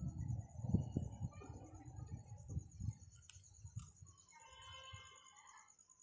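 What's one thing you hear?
A parrot pecks and crunches food.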